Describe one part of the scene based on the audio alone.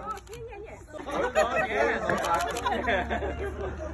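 Several women chatter and call out with animation close by.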